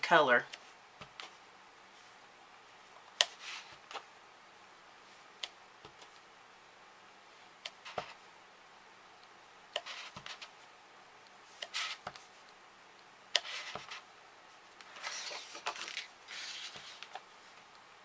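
A rubber stamp taps down onto paper again and again.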